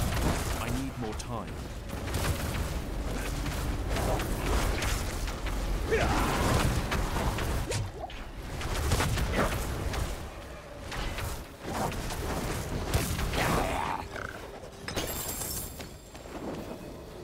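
Fiery blasts roar and burst repeatedly.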